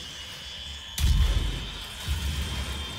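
A heavy gun fires with a loud, booming blast.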